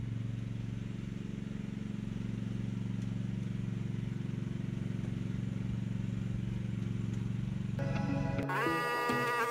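A small excavator's diesel engine idles with a steady low rumble.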